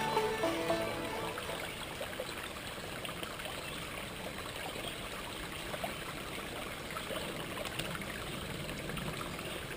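A shallow stream trickles and babbles over rocks outdoors.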